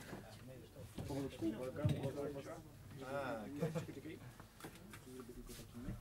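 A guitar knocks and thumps as it is handled.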